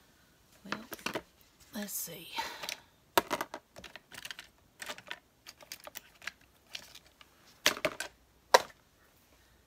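Crafting items rustle and clatter as they are handled on a table.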